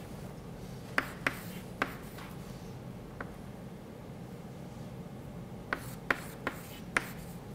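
Chalk taps and scratches sharply on a board.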